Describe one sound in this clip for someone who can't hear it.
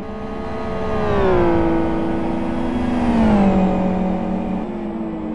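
A racing car engine roars past at high revs, its pitch dropping as it goes by.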